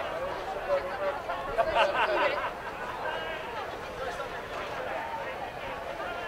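A large outdoor crowd chatters.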